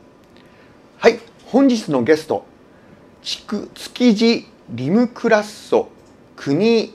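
A middle-aged man talks calmly into a microphone.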